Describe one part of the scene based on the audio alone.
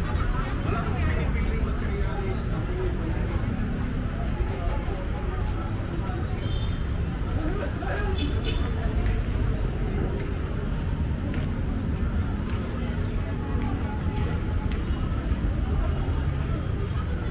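A crowd of people murmurs nearby outdoors.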